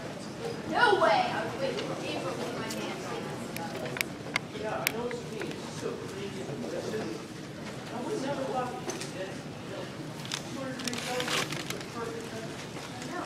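A man answers, heard from afar in a large echoing hall.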